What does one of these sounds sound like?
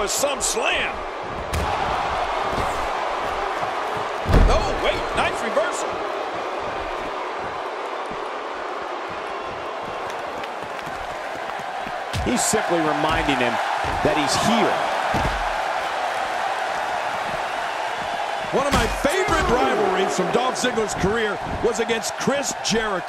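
A large crowd cheers steadily in an arena.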